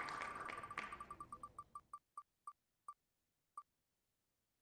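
A spinning prize wheel ticks as it slows to a stop.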